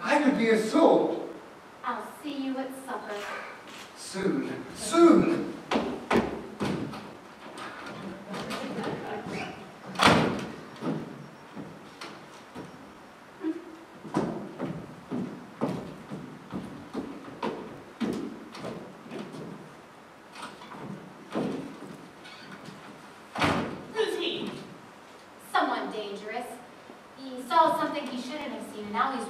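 A woman speaks with animation from a distance in an echoing hall.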